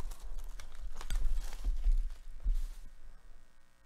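Plastic packaging crinkles and rustles up close.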